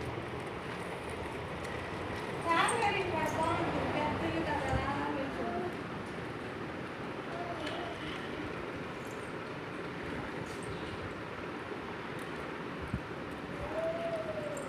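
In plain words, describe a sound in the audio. A plastic baby walker's wheels roll on a tiled floor.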